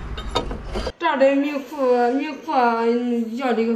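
A young woman sings nearby.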